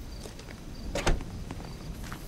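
A freezer lid slams shut with a thud.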